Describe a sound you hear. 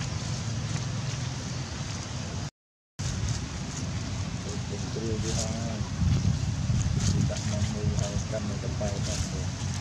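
Monkeys rustle through dry leaves as they walk.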